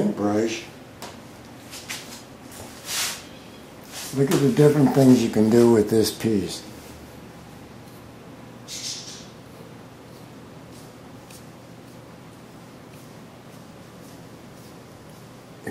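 A comb brushes through hair.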